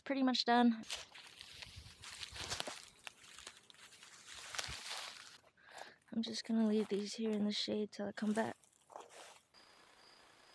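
Footsteps crunch on dry grass and leaves.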